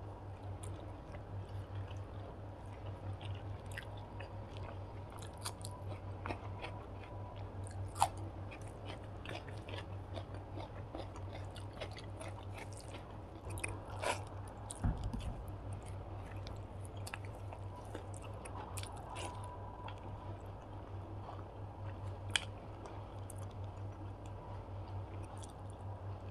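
Fingers squish and mix rice on a plate.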